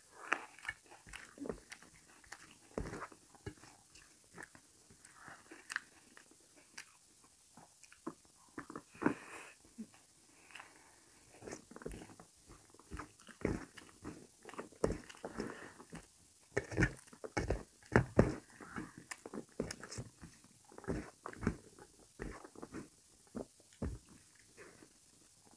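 Fingers squelch and mix rice on a metal plate.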